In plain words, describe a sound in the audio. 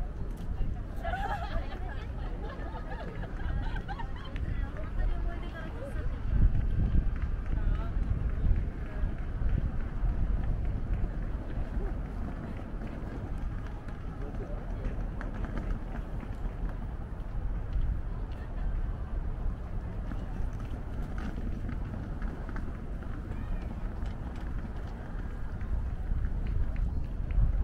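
Wind rumbles steadily across an open outdoor space.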